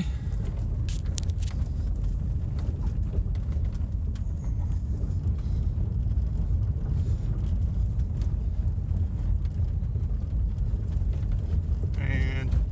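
Gravel and stones crunch and knock under the tyres.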